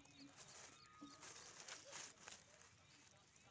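Dry corn husks rustle as a kitten moves through them.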